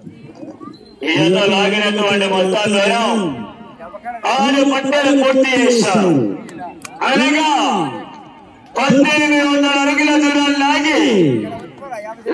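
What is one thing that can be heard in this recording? A man announces loudly through a loudspeaker in long, drawn-out calls, outdoors.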